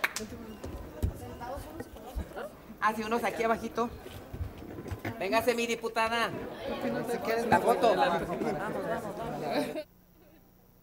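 A crowd of men and women chatter and call out loudly nearby.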